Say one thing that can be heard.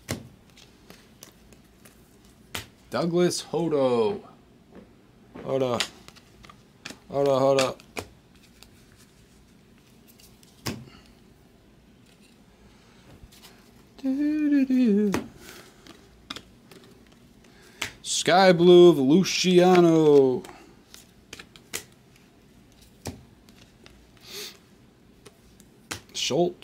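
Trading cards flick and rustle in hands.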